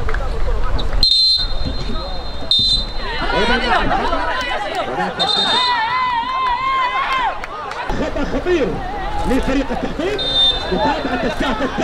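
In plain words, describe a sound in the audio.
A referee's whistle blows in short, sharp blasts.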